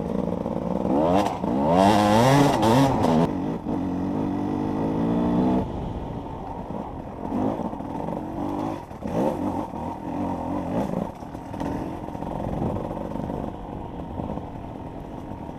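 Knobby tyres crunch over dirt and gravel.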